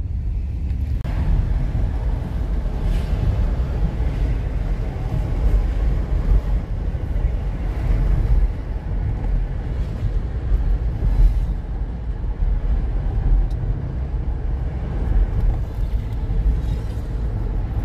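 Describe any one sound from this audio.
Traffic rushes past on a busy road.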